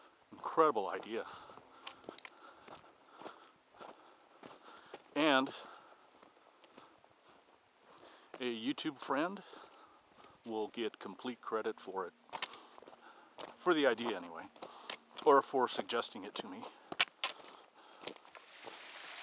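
Footsteps crunch on a stony trail.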